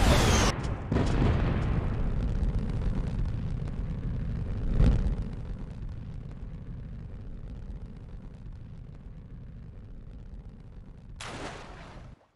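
A deep rumble slowly fades away.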